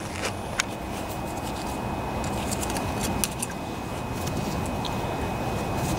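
Small metal engine parts click and knock as they are handled.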